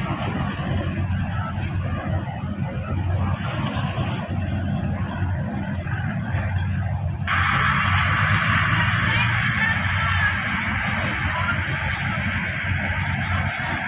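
Waves lap and splash on the water.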